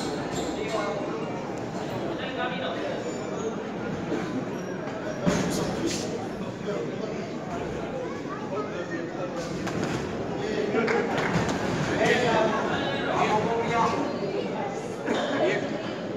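A crowd of spectators murmurs and shouts in an echoing hall.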